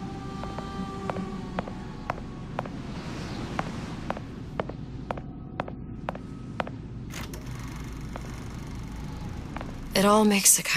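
A film projector ticks and clatters steadily.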